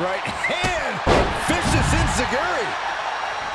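A body slams heavily onto the floor with a thud.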